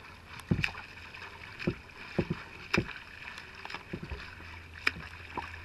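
Water laps and sloshes close by.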